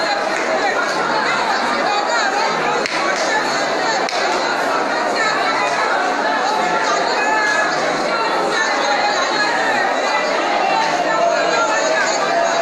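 A man prays aloud in an echoing hall.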